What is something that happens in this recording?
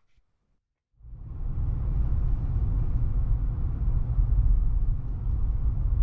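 A car engine hums steadily with road rumble while driving.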